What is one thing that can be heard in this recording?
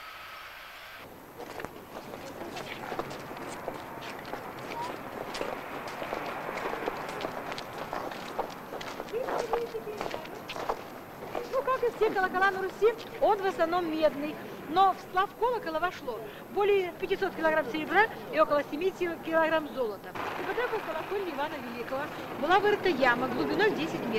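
A crowd of adults murmurs and chatters nearby outdoors.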